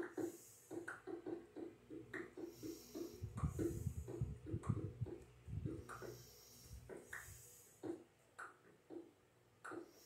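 A video game plays quick, repeated block-breaking taps through a television speaker.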